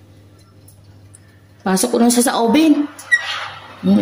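An oven door creaks open.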